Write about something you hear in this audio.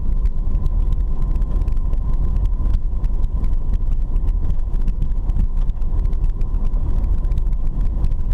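A car body rattles and knocks over bumps.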